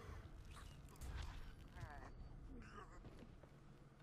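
A body thumps onto a wooden floor.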